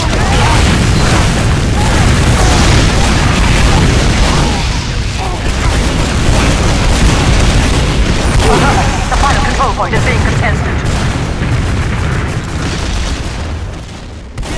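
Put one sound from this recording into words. Explosions boom loudly in quick succession.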